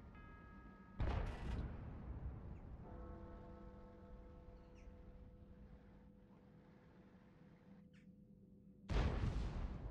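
A tank cannon fires with a loud boom that rings out.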